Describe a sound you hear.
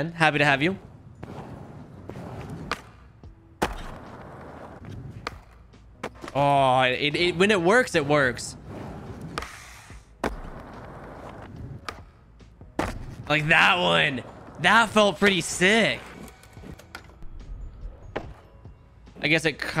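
Skateboard wheels roll and rumble on a smooth floor.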